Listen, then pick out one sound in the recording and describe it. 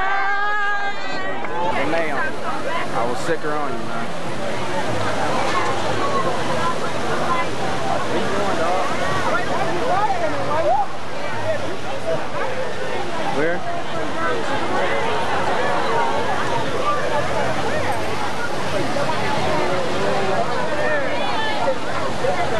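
A large crowd of men and women talks and calls out loudly all around.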